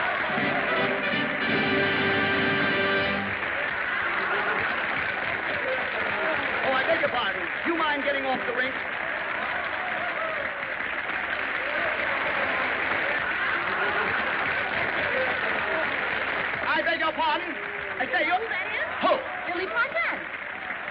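A man shouts with animation above the crowd.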